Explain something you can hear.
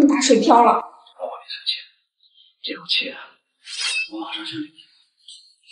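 A man speaks softly and soothingly, close by.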